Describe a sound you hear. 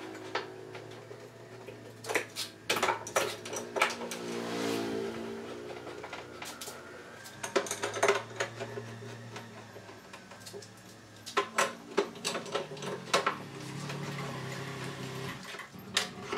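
Metal bar clamps click and clank as they are tightened.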